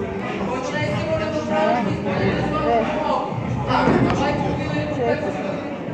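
Men talk in the background of a large echoing hall.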